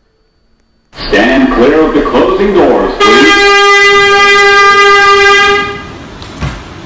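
A subway train's door chime rings loudly.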